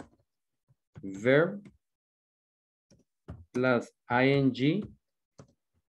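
A man speaks calmly over an online call, in short phrases.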